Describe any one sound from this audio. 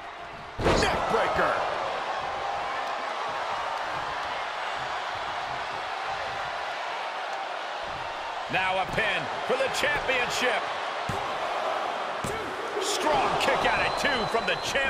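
A large crowd roars and cheers steadily.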